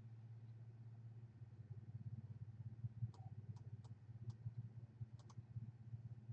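A woman speaks quietly and close by.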